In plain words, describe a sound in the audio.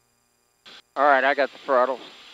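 An older man speaks through a headset intercom.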